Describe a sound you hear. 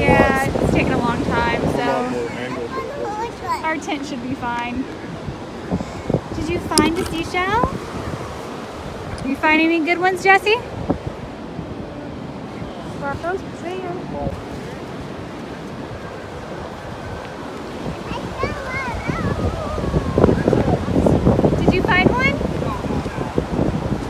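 A young child talks in a high voice close by.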